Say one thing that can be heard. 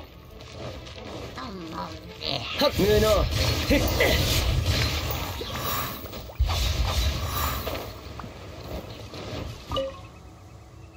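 Magic blasts whoosh and crackle in a noisy fight.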